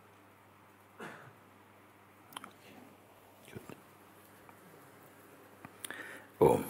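A middle-aged man speaks softly in short bursts, close to a microphone.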